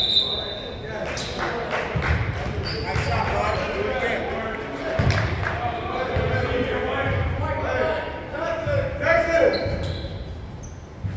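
Young men call out to each other in an echoing gym.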